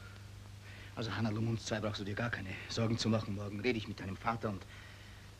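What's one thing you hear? A man speaks softly and tenderly nearby.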